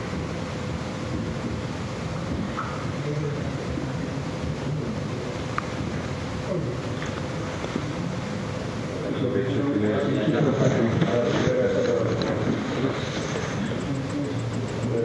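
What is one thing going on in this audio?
Adults talk quietly at a distance in a large, echoing room.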